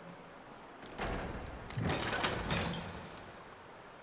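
A heavy metal door mechanism rumbles and clanks open.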